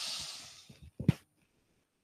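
Feet thud and shuffle on a tiled floor.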